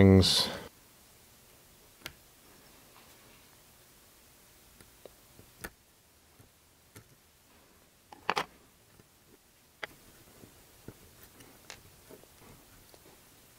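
A screwdriver clicks and scrapes against small metal parts.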